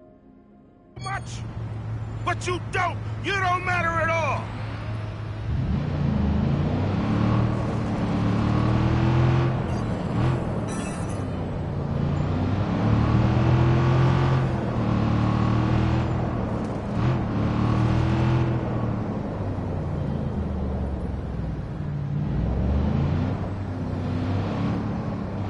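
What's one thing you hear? A pickup truck engine rumbles and revs as it drives along a street.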